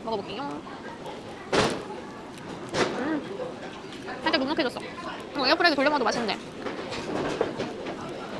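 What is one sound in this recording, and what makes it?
Crispy pastry crunches as a young woman bites and chews.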